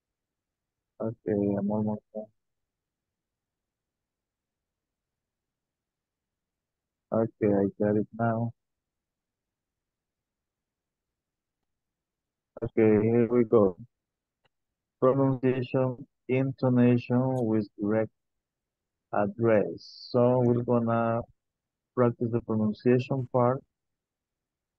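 A middle-aged man speaks calmly through an online call, in short phrases with pauses.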